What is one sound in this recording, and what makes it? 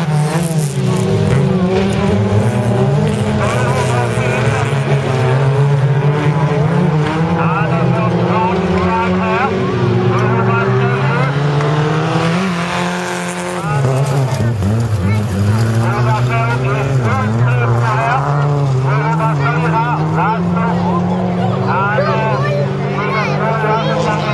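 Rally car engines roar and rev in the distance.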